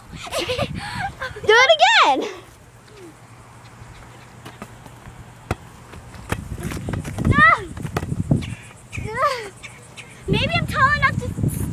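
A young girl squeals and shouts excitedly close by.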